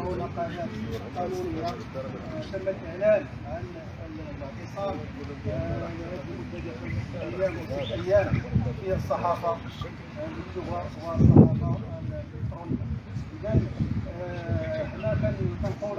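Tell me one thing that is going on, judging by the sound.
A man speaks loudly outdoors.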